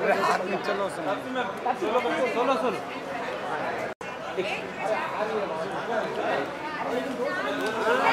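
A crowd of men and women chatters and calls out nearby.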